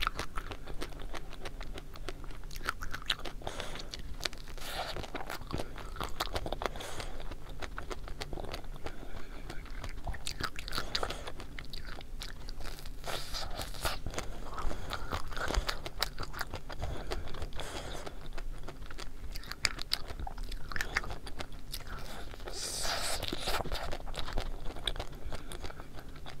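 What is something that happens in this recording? A young woman chews and crunches close to a microphone.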